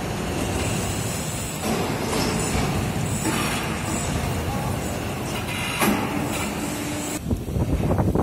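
An overhead crane hums steadily as it lifts a heavy load in a large echoing hall.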